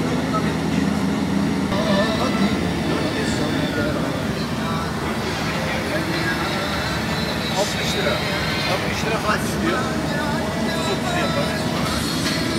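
A vehicle's engine and tyres rumble steadily on a road.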